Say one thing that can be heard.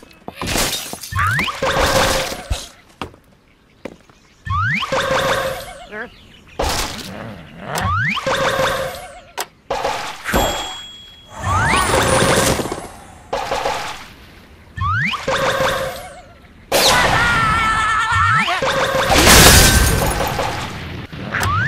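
A slingshot stretches with a rising creak and snaps as birds are launched.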